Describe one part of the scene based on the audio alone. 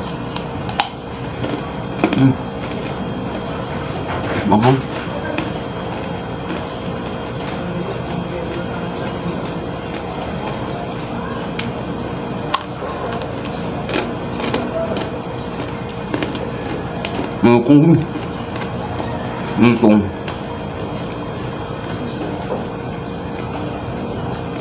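A young man chews and smacks his lips while eating.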